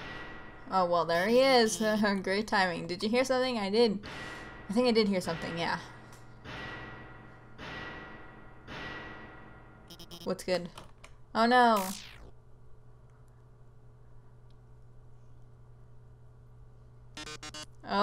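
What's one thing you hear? Short electronic blips sound as game dialogue text types out.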